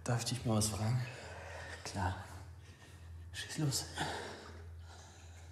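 A young woman asks a question softly, close by.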